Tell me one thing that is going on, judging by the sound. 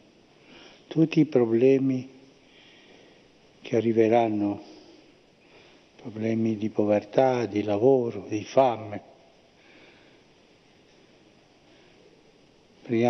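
An elderly man speaks slowly and solemnly into a microphone, with pauses.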